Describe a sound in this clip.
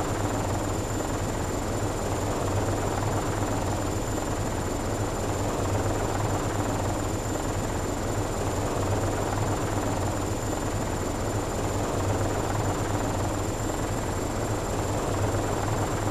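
A helicopter engine drones steadily with a low rumble.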